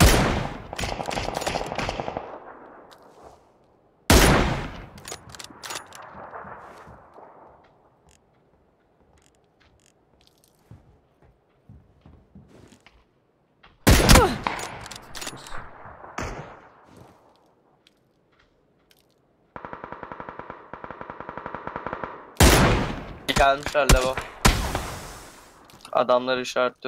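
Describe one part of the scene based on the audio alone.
A rifle fires loud single shots that echo away into the distance.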